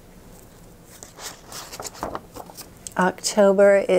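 Pages of a binder rustle as they are turned.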